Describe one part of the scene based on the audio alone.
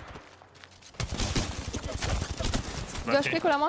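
Rapid gunfire from a video game rattles.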